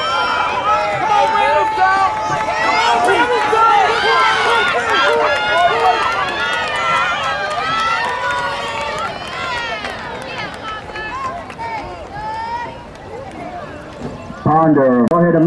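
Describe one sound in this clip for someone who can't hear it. A crowd of spectators cheers and shouts loudly outdoors, then fades.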